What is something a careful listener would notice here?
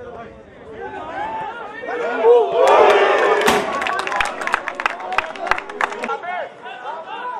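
A man shouts loudly from the sideline of an outdoor pitch.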